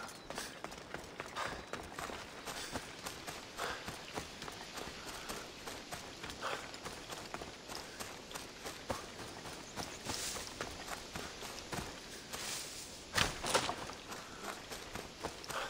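Footsteps crunch on dirt and rock.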